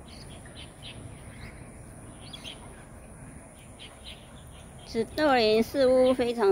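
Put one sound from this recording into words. A small parrot chirps softly in short bursts.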